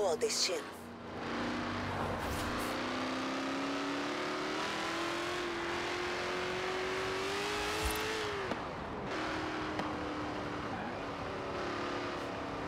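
A car engine roars and rises in pitch as it speeds up, then drops as it shifts gear.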